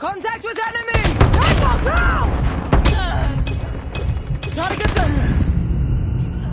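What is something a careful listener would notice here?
An explosion booms nearby with a deep rumble.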